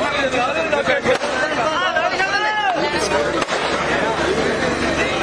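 A dense crowd of men and women talks and shouts all around, close by.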